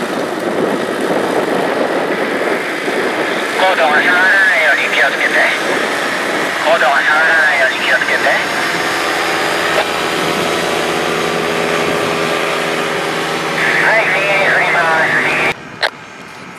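A paramotor engine drones steadily overhead.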